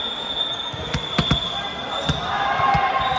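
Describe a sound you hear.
A volleyball bounces on the floor with dull thuds.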